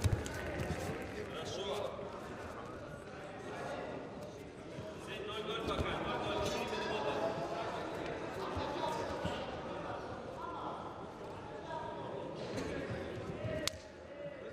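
Bare feet slap and shuffle on a mat.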